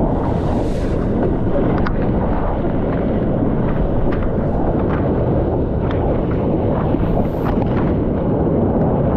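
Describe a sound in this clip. Wind buffets the microphone in a steady low roar.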